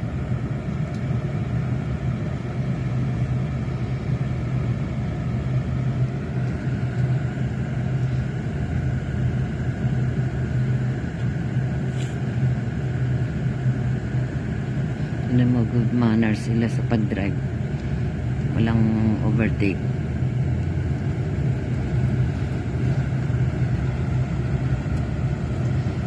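A car's engine and road noise hum from inside a moving car.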